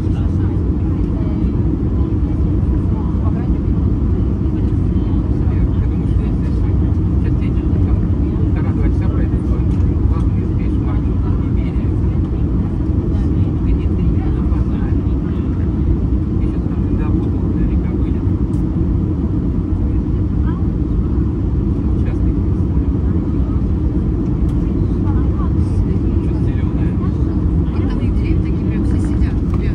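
Air rushes loudly past the aircraft.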